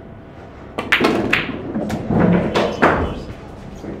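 Billiard balls clack together and roll on the table.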